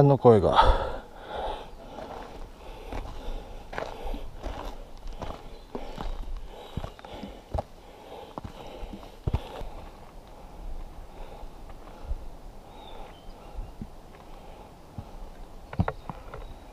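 Footsteps crunch on a rocky dirt trail.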